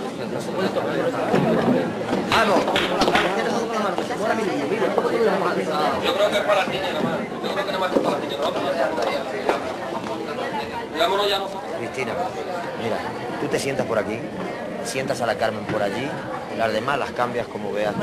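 A crowd of men and women chatters loudly in a large echoing hall.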